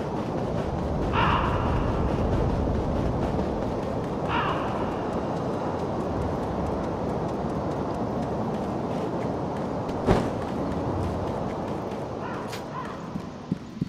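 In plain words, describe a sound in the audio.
Footsteps crunch quickly over snow and ground.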